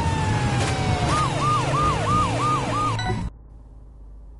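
A police siren wails in quick rising and falling bursts.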